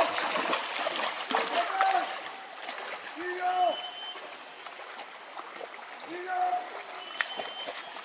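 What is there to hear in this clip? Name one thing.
Water splashes as a man wades through a shallow stream.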